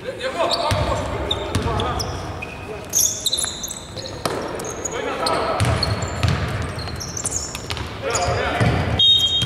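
Young men shout to each other during play in a large echoing arena.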